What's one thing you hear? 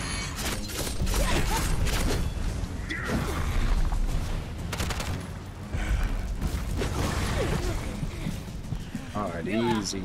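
A large creature roars and crashes about.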